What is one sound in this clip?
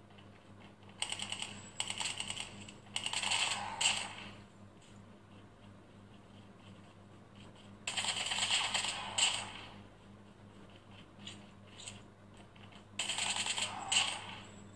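Gunfire bursts from a small phone speaker in short volleys.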